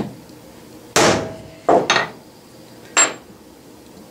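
A hammer strikes a block resting on metal several times.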